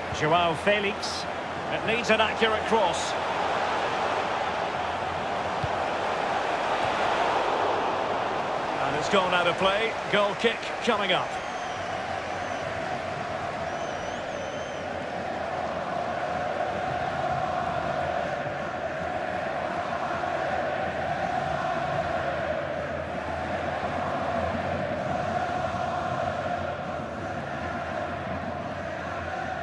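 A stadium crowd roars and chants steadily throughout.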